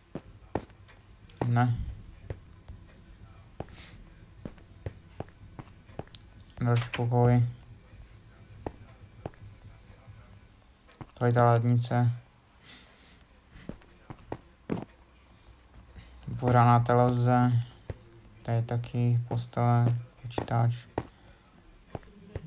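Footsteps tap lightly on a hard floor.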